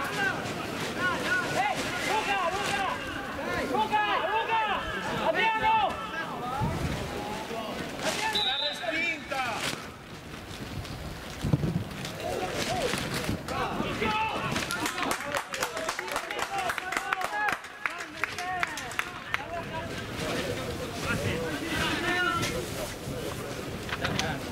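Young men shout and call out across an open outdoor field.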